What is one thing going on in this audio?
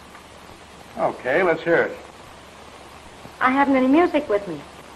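A young woman speaks with feeling, heard through an old, thin recording.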